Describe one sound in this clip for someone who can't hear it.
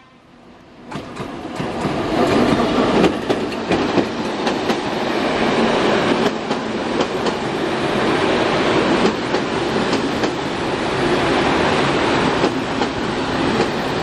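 Train carriages rumble and clatter loudly past on the rails close by.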